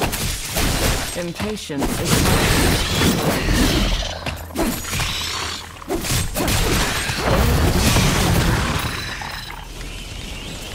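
Game sound effects of blows and magic blasts crash rapidly in a fight.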